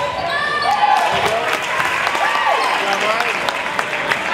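A crowd cheers and applauds in an echoing gym.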